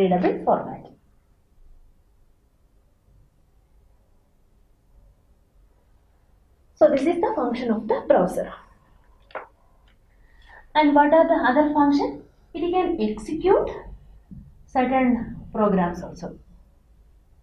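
A young woman speaks calmly and clearly, as if explaining, close to a microphone.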